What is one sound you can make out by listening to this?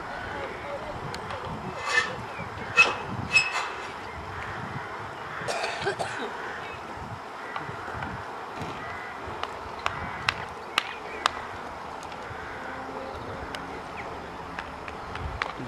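A horse canters over soft ground with muffled hoofbeats in the distance.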